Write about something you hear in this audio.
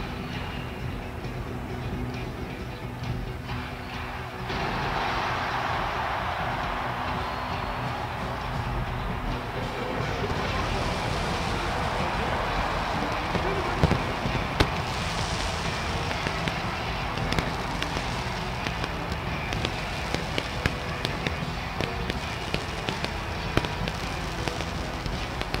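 A large stadium crowd roars and cheers in the open air.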